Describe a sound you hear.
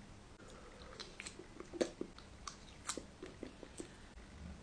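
A young man slurps and chews food close by.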